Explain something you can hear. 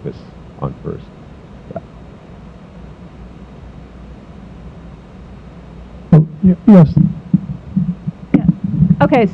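A young man speaks calmly through a microphone in a large room.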